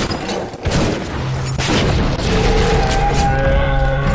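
Flames roar and burst.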